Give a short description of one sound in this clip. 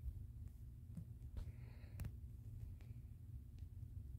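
Short clicks and pops sound as cards are placed.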